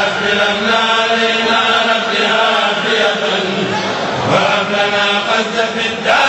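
A large crowd of men chants together loudly.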